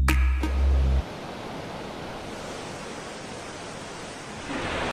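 A huge explosion rumbles and roars over water.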